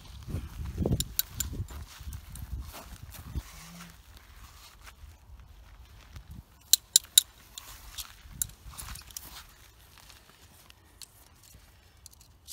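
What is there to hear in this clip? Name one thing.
Metal tent pegs click and clink as they are pulled out.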